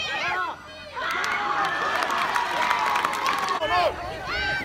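Young voices cheer loudly after a goal.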